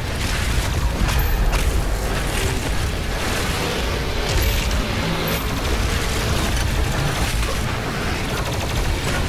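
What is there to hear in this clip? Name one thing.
A heavy plasma gun fires rapid crackling bursts.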